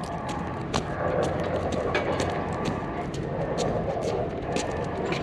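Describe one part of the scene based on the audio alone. A small dog's claws patter on pavement.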